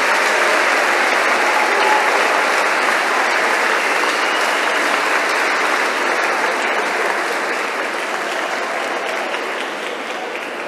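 A crowd applauds loudly, then slowly fades.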